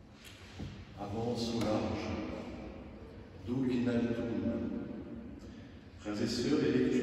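A man reads aloud calmly into a microphone in an echoing hall.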